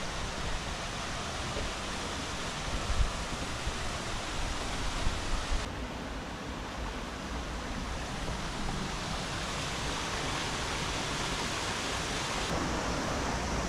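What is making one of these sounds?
A stream trickles and splashes over rocks nearby.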